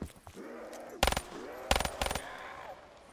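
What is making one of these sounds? A gun fires several loud shots in quick succession.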